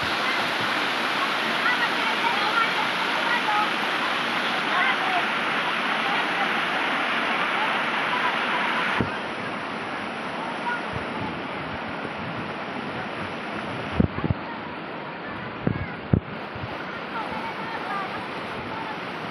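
Children shout and laugh as they play in the water.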